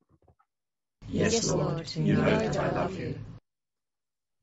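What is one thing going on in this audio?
A group of elderly people read aloud together over an online call.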